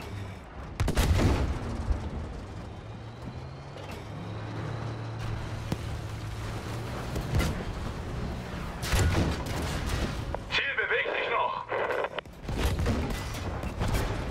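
Shells blast in the distance.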